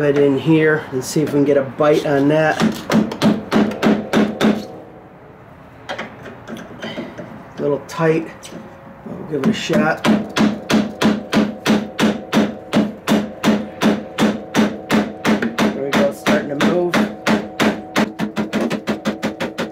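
A rubber mallet strikes metal in quick, repeated knocks.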